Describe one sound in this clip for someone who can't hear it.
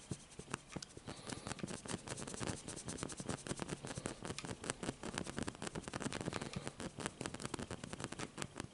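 A middle-aged man speaks quietly close by.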